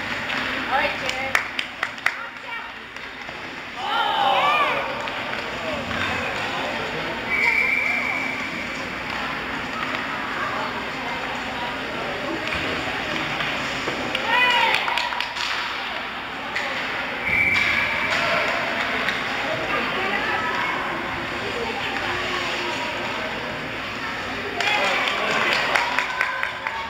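A puck clacks against a hockey stick.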